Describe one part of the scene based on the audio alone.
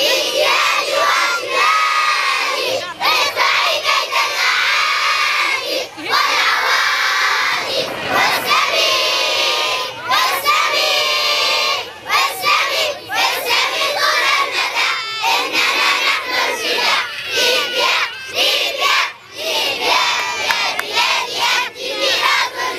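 A large group of children shouts and sings together loudly outdoors.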